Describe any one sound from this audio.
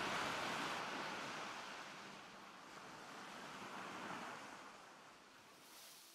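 Paws pad softly across sand.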